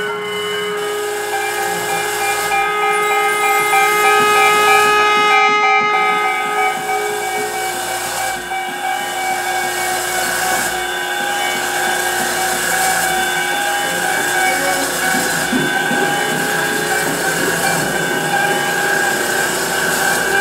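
Electronic sounds drone and hum steadily.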